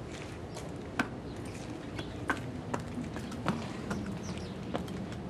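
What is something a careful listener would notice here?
Horse hooves clop on hard ground.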